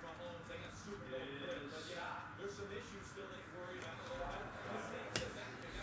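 Trading cards rustle and slide against each other.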